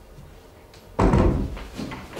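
A door thuds shut nearby.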